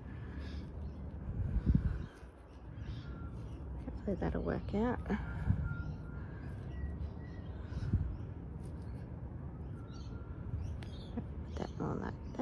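Fingers push into loose mulch with soft crunching and rustling.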